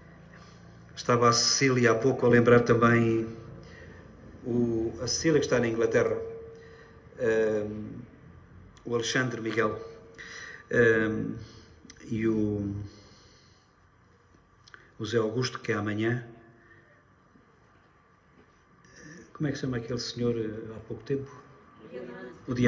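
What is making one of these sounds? A middle-aged man speaks calmly through a microphone in a reverberant room.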